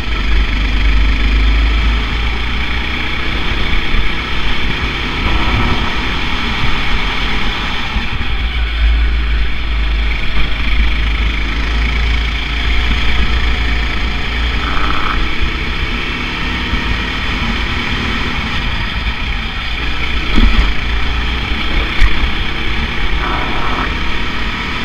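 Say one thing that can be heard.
A small kart engine buzzes loudly up close, rising and falling with the throttle.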